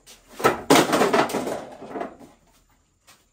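Wooden pieces clatter and knock together nearby.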